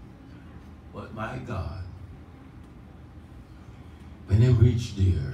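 A man speaks with feeling into a microphone in an echoing room.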